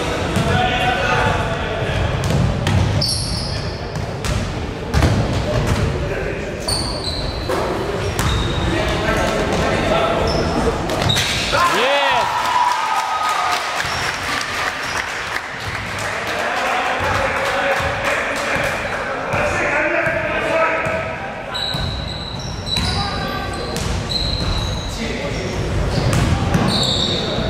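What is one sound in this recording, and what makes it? Players and spectators call out in a large echoing hall.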